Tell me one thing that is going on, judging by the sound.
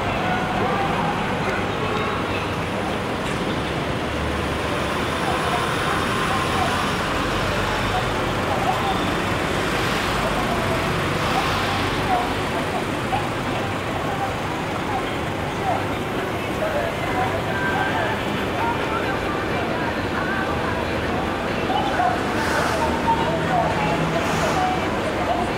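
Traffic drives past on a city street with a steady hum.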